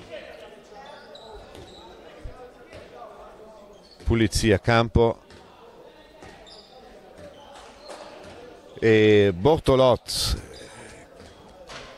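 A crowd murmurs in a large echoing sports hall.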